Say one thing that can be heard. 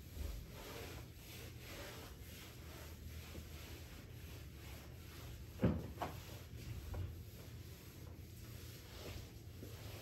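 A mop swishes back and forth across a floor.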